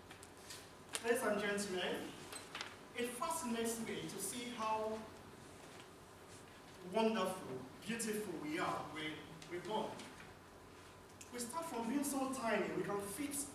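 A man speaks calmly to a room, a short distance away.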